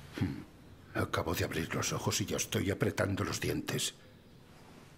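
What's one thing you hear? A young man speaks in a low, tense voice.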